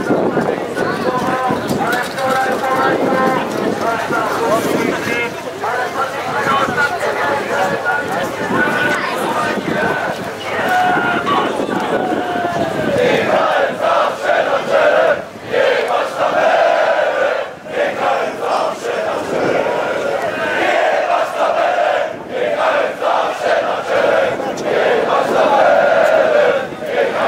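A large crowd of men and women chants and sings loudly outdoors.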